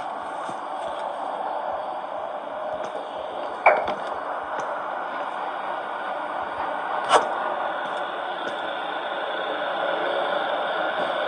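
Fingertips tap softly on a touchscreen.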